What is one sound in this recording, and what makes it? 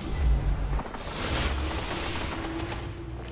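A loud explosion booms and rumbles, then fades.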